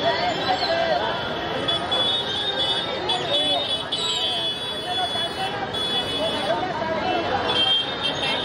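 A crowd chatters and shouts in a busy street.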